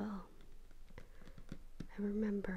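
A hand taps and crinkles plastic packaging.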